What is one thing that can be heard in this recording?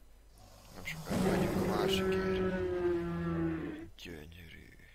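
A large dinosaur lets out a deep, loud roar.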